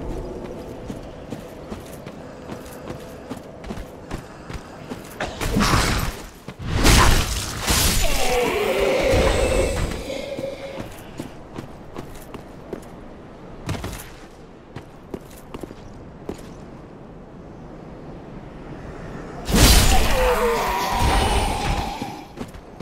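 Armoured footsteps crunch steadily over stony ground.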